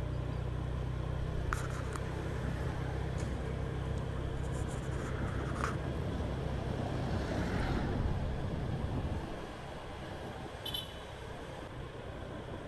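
Traffic passes by on a city street.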